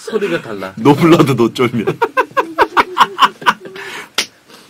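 Two men laugh loudly into microphones.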